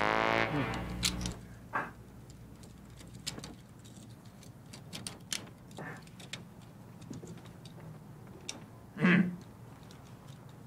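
Metal handcuffs clink and rattle.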